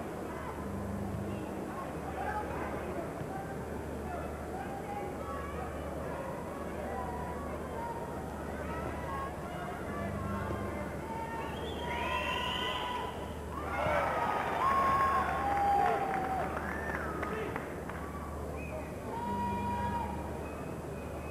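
A crowd murmurs and chatters in a large echoing arena.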